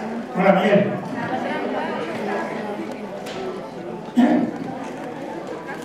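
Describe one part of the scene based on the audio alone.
An elderly man speaks to an audience through a microphone in an echoing hall.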